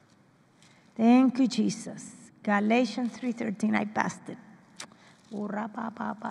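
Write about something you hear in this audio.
A woman speaks calmly into a microphone, reading out.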